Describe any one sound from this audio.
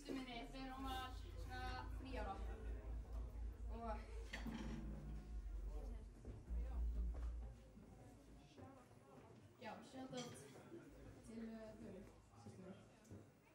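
A young woman sings through a microphone and loudspeakers.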